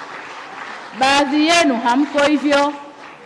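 Women in a crowd ululate loudly.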